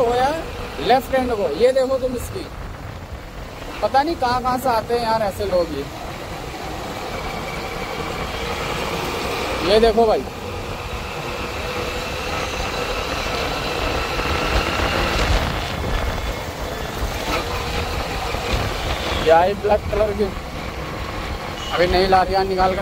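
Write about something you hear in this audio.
A vehicle's engine hums steadily while driving.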